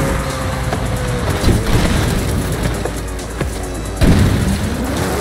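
A car crashes and scrapes over rough rocky ground.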